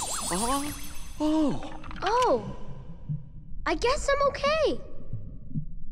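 A boy speaks cheerfully with relief.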